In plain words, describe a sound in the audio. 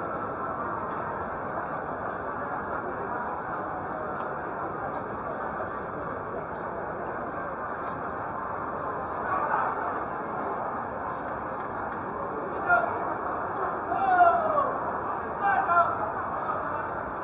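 A crowd murmurs steadily.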